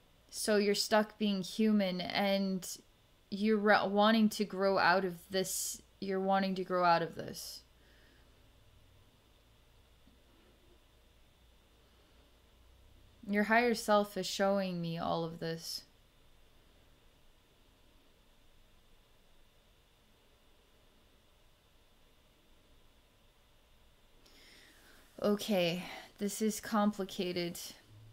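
A woman speaks calmly and softly into a close microphone, with long pauses.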